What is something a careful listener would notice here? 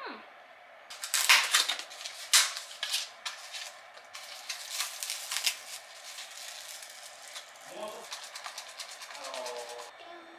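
Chopsticks stir sticky food in a small tub.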